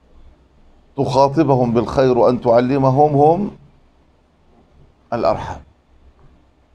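A middle-aged man speaks calmly and close up through a clip-on microphone.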